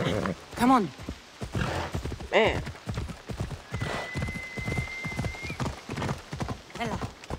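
A horse gallops with heavy, rhythmic hoofbeats on the ground.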